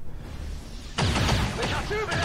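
Energy weapons fire in a burst of sharp shots.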